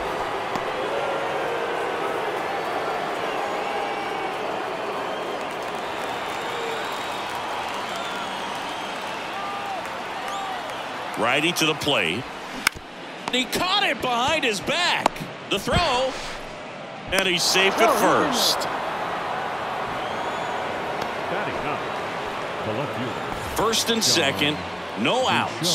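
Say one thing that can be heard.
A large crowd murmurs and chatters in a stadium.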